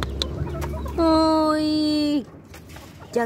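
A rooster crows loudly close by.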